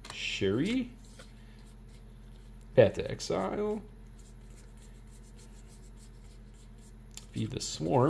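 Playing cards slide and rustle against each other.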